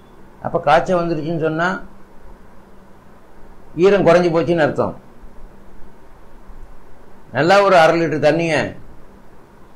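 An elderly man speaks calmly and close into a microphone, in short phrases with pauses.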